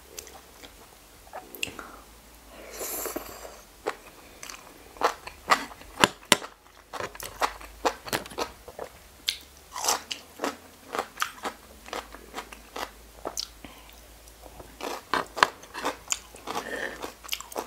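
A young woman slurps and chews crunchy food close to a microphone.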